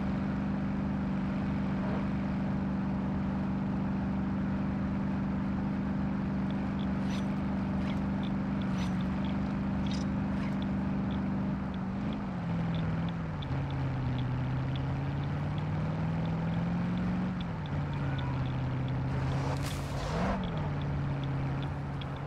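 A truck engine drones steadily, its pitch shifting as it changes gear.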